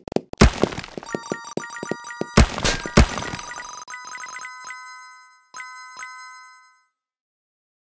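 A bright chime rings out as a level is completed.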